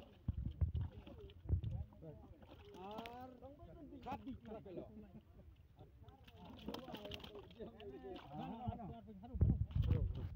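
Wet fish slap and flap against each other in a plastic bucket.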